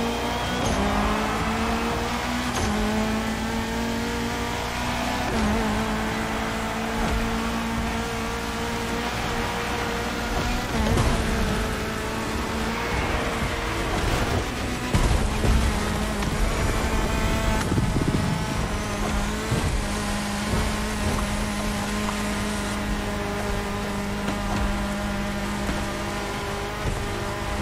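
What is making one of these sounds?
A rally car engine revs hard, rising through the gears with each shift.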